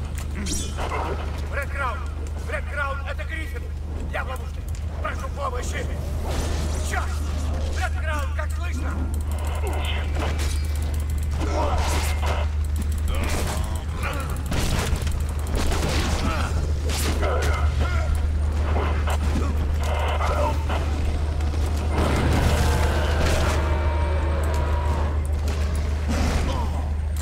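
Monsters snarl and screech during a fight.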